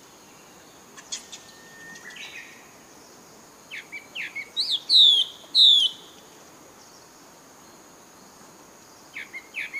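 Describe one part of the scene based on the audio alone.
A young monkey squeals in high, shrill cries nearby.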